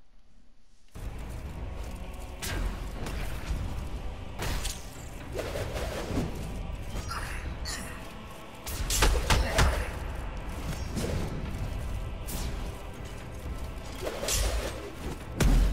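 Game explosions and blasts boom and crackle in quick bursts.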